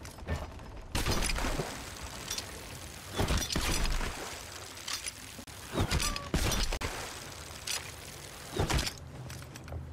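A cannon fires with loud booms.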